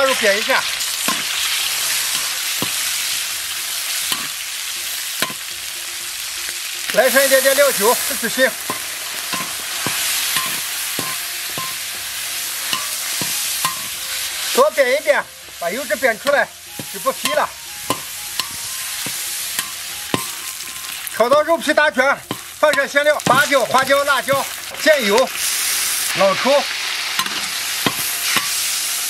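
Meat sizzles loudly in hot oil.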